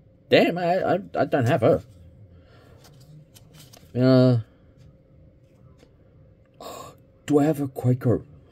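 Trading cards slide and rustle softly against each other.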